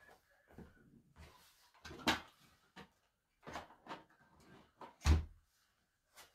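Bags and gear rustle and thump as they are moved around.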